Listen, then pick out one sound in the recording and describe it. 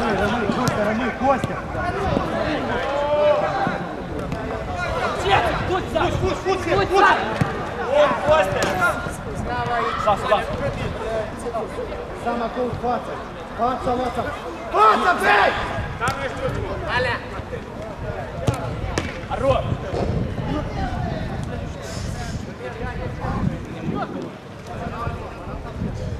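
Young players shout and call out across an outdoor pitch.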